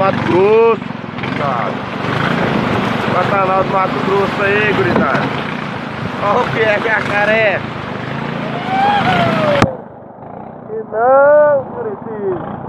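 Animals in the water cry out with high, wavering calls.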